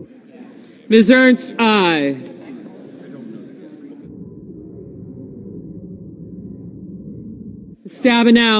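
A woman reads out names over a microphone in a large echoing hall.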